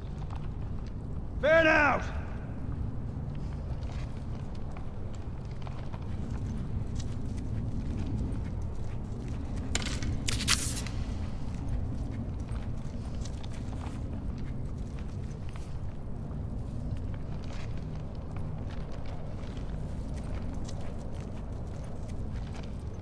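Soft footsteps shuffle on a hard floor.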